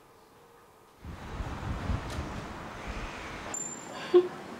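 Young women chat nearby in a room.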